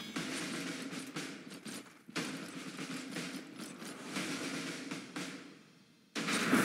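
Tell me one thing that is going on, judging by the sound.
Swords clash in a battle.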